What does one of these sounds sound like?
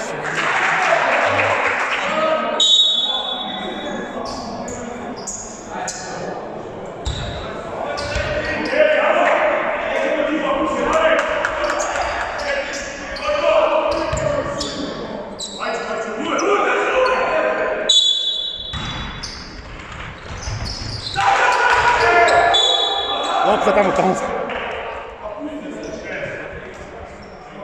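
Young players shout and call to each other in a large echoing hall.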